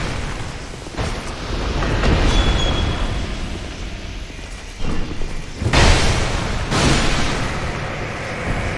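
A sword strikes with heavy, crackling impacts.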